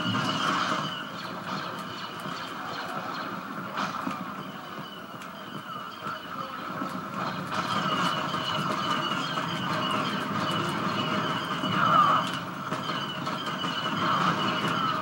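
Rapid blaster shots and game sound effects play through a television speaker.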